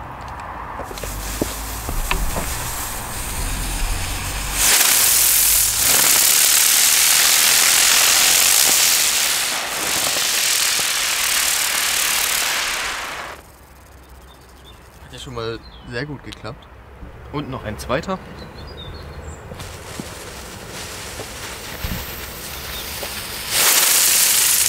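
A fuse fizzes and sputters.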